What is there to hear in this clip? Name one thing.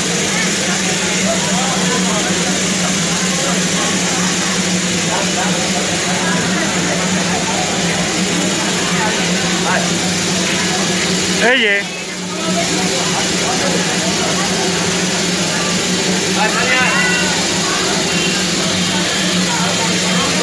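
Steam hisses loudly from a steam locomotive.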